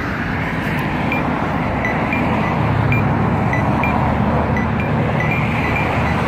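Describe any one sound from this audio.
A crosswalk button clicks as it is pressed.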